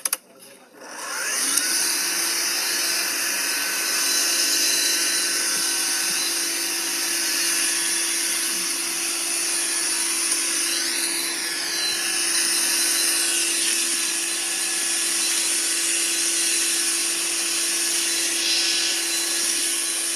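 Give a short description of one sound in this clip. A vacuum cleaner motor runs with a steady, high whining hum.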